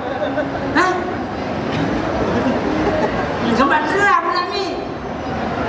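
A man calls out through loudspeakers in a large echoing hall.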